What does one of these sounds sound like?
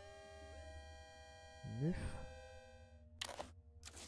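Electronic tones hum steadily and then slide in pitch.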